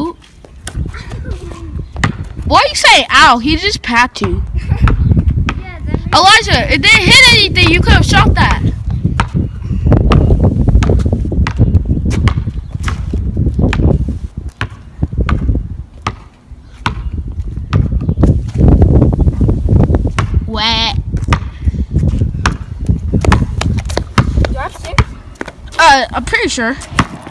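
A basketball bounces on asphalt outdoors.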